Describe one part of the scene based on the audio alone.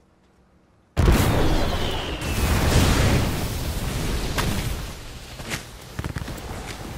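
Fire roars and crackles loudly.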